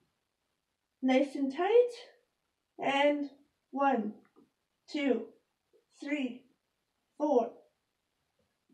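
A young woman counts aloud nearby in short bursts.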